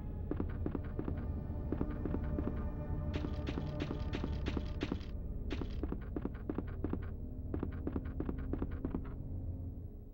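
Footsteps clack on a hard floor at a quick, steady pace.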